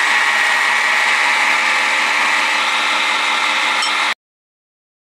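A machine motor whirs loudly and steadily, then stops abruptly.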